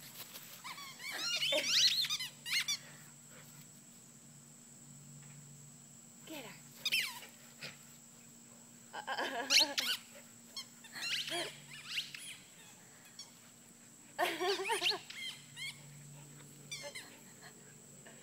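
Two dogs growl and yip playfully close by.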